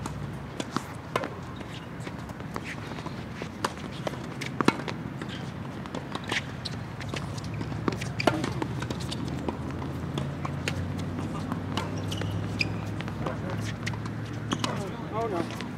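Tennis balls are struck with rackets with sharp pops.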